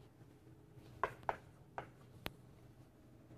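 Chalk taps on a blackboard.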